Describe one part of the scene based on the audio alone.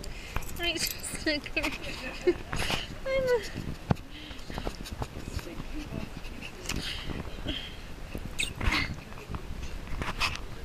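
A dog sniffs and snuffles right up close.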